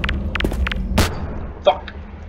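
A grenade explodes with a loud bang.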